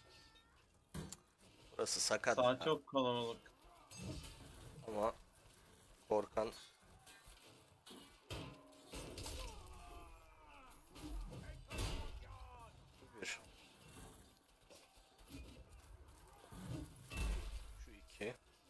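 Swords clash and clang against shields and armour.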